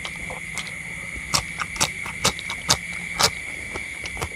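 A man crunches on raw bitter melon close to the microphone.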